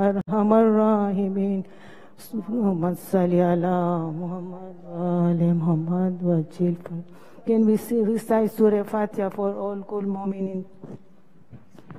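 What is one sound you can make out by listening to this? A man chants loudly and melodiously nearby.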